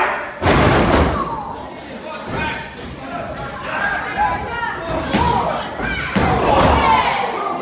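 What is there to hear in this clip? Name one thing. A seated crowd of adult spectators talks and calls out in a large echoing hall.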